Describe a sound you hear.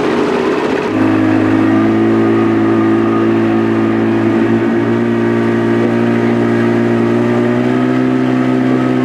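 A large ship's engine hums steadily nearby.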